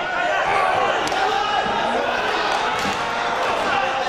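Wrestlers' bodies thud on a mat.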